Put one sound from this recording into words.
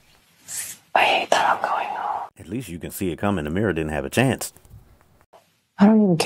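A young woman speaks quietly and wearily, close by.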